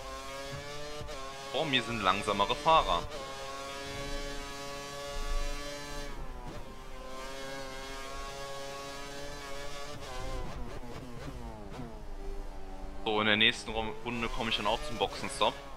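A racing car engine screams at high revs, rising and dropping in pitch as it shifts gears.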